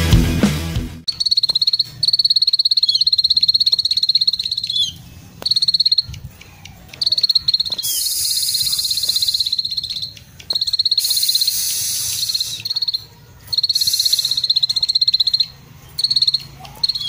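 A small bird sings fast, high, buzzing trills in repeated bursts close by.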